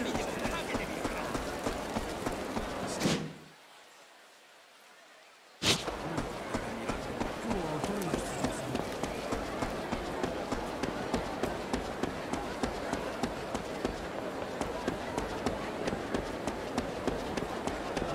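Quick footsteps run on a hard stone floor.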